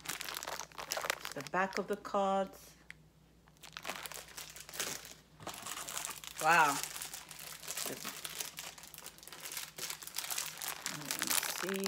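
Plastic card sleeves crinkle and rustle in a woman's hands.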